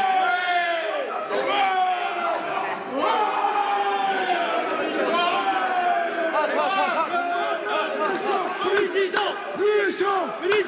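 A crowd of men chants and sings loudly close by.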